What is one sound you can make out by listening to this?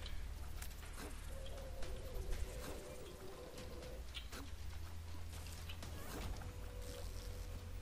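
Game sound effects pop and splat in quick bursts.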